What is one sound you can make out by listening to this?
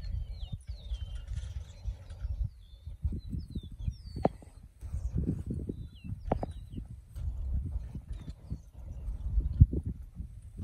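A plough scrapes and turns through soil.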